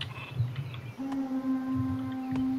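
A game chime rings out with a steady held tone.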